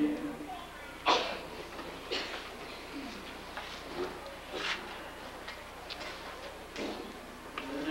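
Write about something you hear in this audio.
An elderly man speaks slowly through a microphone.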